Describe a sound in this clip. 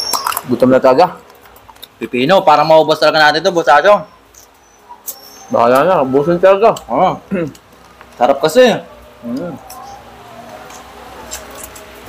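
Food crunches as young men chew.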